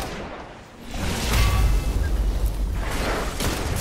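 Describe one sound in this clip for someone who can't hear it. Electricity crackles and booms in a burst.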